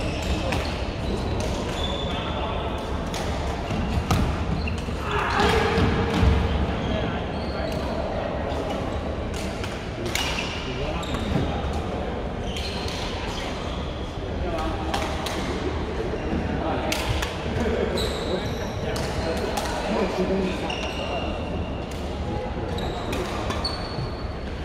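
The sounds echo in a large hall.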